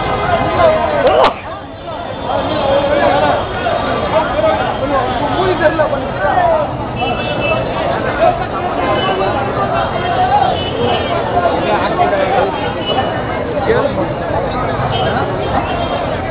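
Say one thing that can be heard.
A crowd of men talk and shout loudly all around, outdoors.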